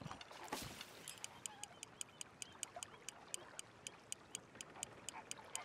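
A fishing reel clicks rapidly as line is wound in.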